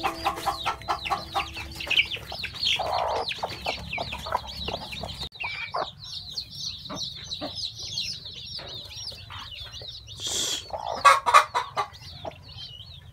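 Chicks peep rapidly and shrilly, close by.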